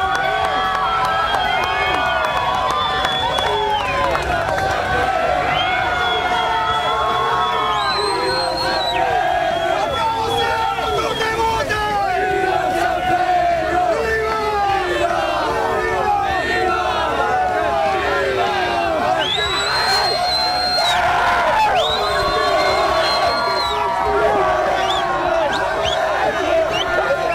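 A large crowd of young men cheers and shouts loudly outdoors.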